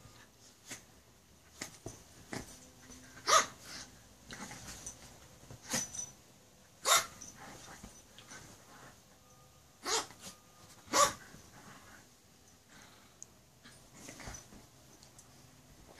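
Dog paws scuffle on a soft bedspread.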